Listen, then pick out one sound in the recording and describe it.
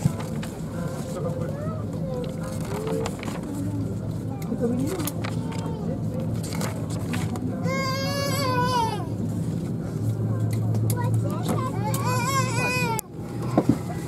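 Magazine pages rustle and flip.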